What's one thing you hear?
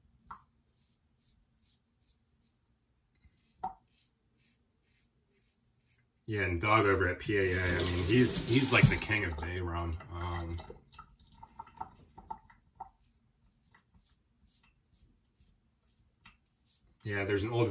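A razor scrapes softly across stubble.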